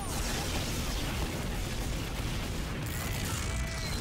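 A rocket launcher fires with a whooshing blast.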